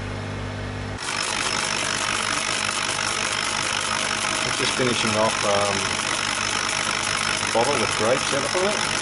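A laser engraving machine hisses steadily as it etches glass.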